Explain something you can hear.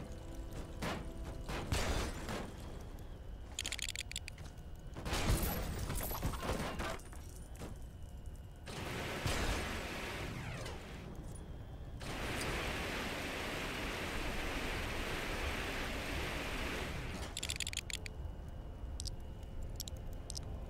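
Game sound effects whoosh and clatter.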